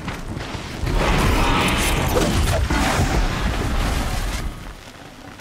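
Electric sparks crackle and burst loudly.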